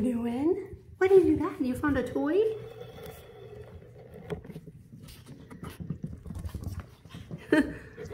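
Puppies tug and chew on a rubber toy.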